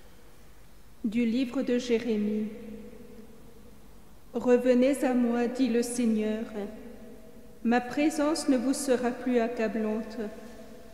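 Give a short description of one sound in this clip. A woman chants slowly through a microphone in a large echoing hall.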